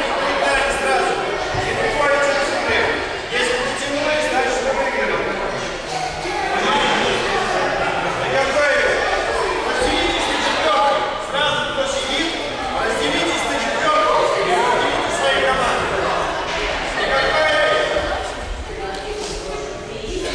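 Many children chatter and call out in a large echoing hall.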